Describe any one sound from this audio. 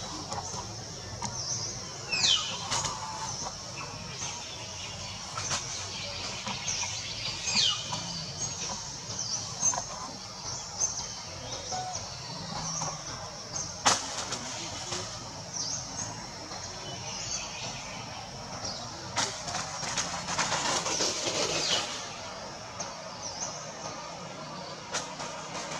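Small monkeys scramble and scrape on tree bark.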